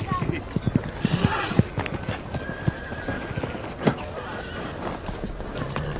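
Hooves thud on grass as a horse walks.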